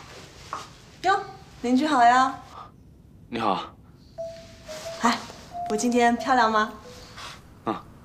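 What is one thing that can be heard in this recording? A young woman speaks cheerfully and playfully, close by.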